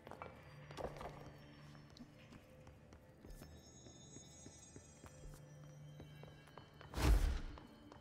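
Footsteps run quickly across a hard floor.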